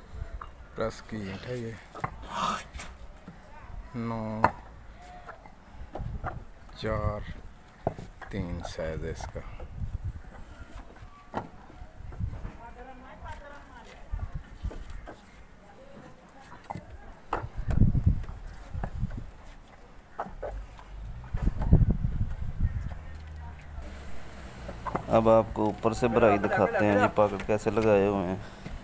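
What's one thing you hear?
Men talk nearby.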